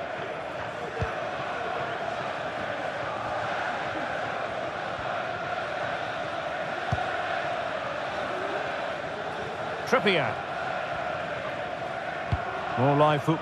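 A football is kicked with short dull thumps.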